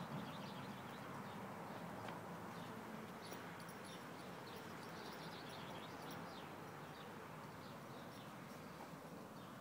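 A horse tears and munches grass nearby.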